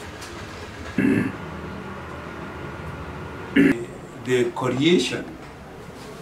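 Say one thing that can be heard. An elderly man speaks calmly and close to a microphone.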